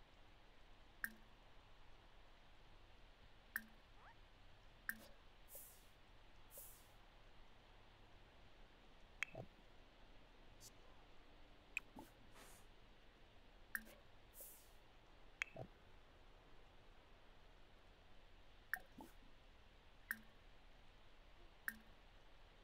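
Short soft chimes sound now and then.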